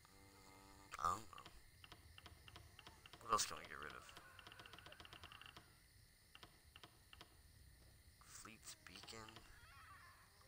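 Short soft menu clicks and chimes sound now and then.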